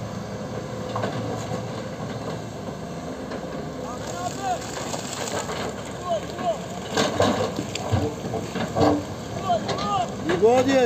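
Excavator buckets scrape and knock against rocks and soil.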